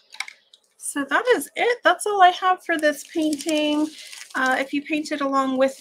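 A sheet of paper rustles as a hand lifts it.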